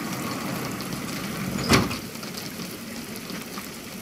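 A garage door rolls open.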